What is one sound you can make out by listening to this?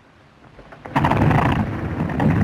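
An aircraft engine bursts into a loud roar.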